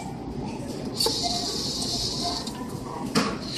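A claw machine's motor whirs as the claw moves.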